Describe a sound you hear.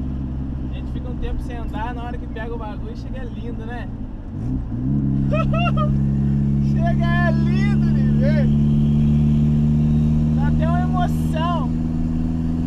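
A man talks casually inside a car.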